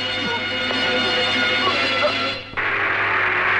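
A woman chokes and gasps.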